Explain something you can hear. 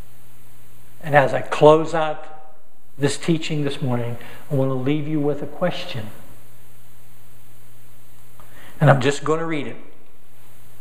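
A man speaks calmly through a microphone in an echoing hall, with pauses.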